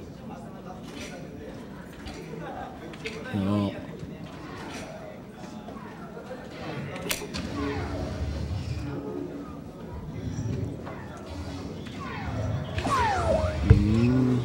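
Darts thud into a dartboard.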